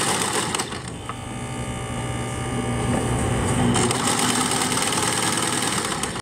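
A sewing machine whirs and stitches steadily.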